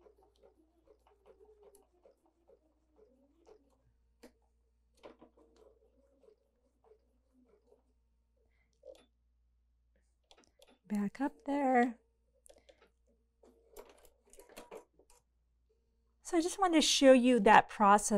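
A sewing machine whirs quietly as its needle stitches.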